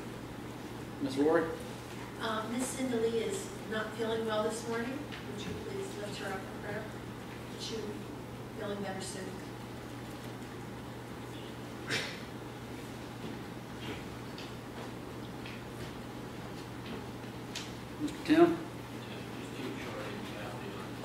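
A middle-aged man speaks calmly through a microphone in an echoing hall.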